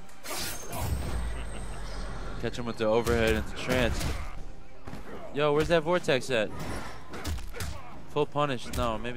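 Punches and kicks land with sharp thuds and thwacks.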